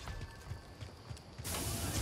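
Footsteps run over gravel.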